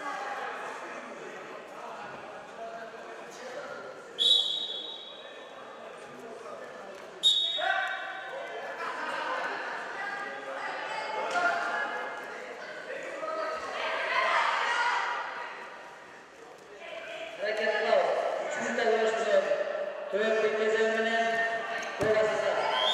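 A crowd of young spectators chatters and calls out in a large echoing hall.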